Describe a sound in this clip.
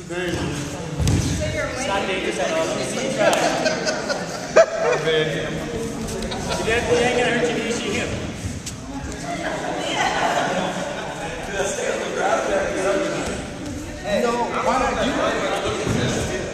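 Several young adults talk and call out in a large echoing hall.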